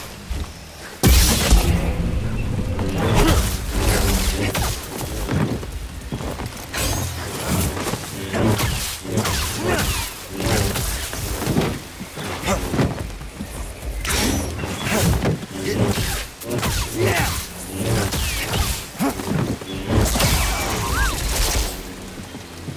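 A blade hums and clashes against a giant creature's armour with sharp metallic hits.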